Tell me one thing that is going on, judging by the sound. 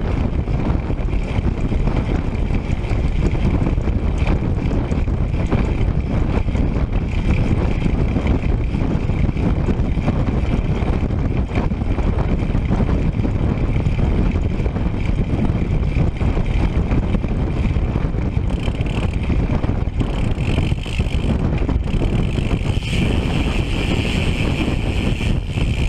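Wind buffets the microphone loudly and steadily outdoors.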